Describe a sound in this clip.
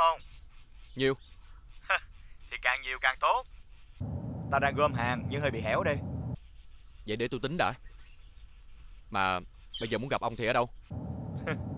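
A young man talks calmly on a phone, close by.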